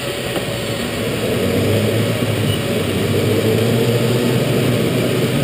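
A go-kart engine roars louder as the kart pulls away and drives off.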